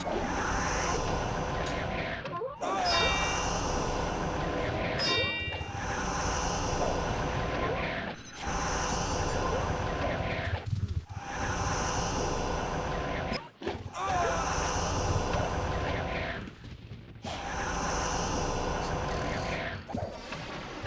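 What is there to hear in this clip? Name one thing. Weapons clash and spells crackle in a fast game battle.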